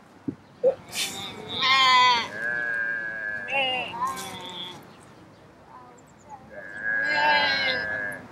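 A woman nearby makes loud, wavering, animal-like cries outdoors.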